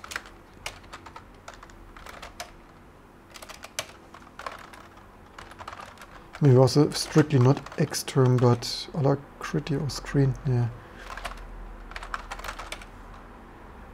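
Keys clatter on a keyboard in quick bursts.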